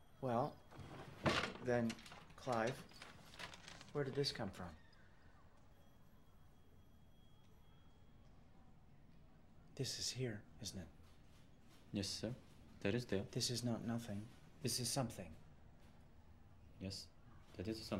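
A man speaks calmly nearby, pausing now and then.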